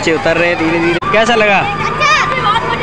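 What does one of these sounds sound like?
A young boy talks cheerfully close by.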